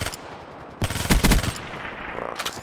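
Rapid gunfire bursts out in loud, sharp cracks.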